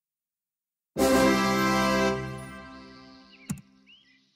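A short game jingle plays and fades.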